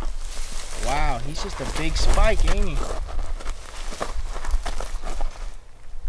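A deer carcass scrapes and drags over brush and dirt.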